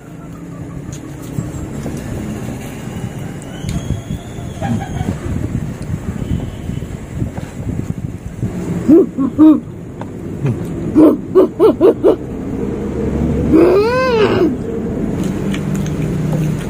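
Food is chewed and smacked close up.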